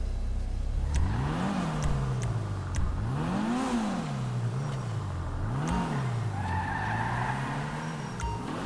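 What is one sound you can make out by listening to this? A race car engine revs up and down repeatedly.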